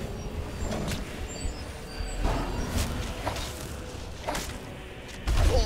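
A large beast growls and roars deeply.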